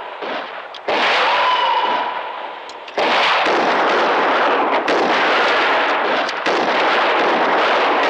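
Rifle shots ring out and echo.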